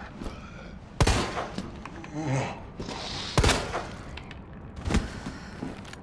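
A handgun fires loud shots that echo in a room.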